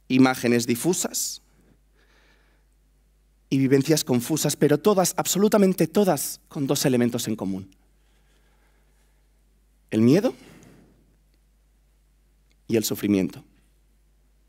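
A young man speaks with animation through a microphone in a large hall, pausing often.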